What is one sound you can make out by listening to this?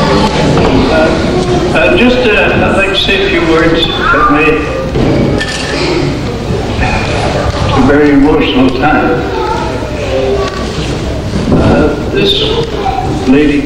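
An elderly man speaks through a microphone and loudspeakers in a large echoing hall.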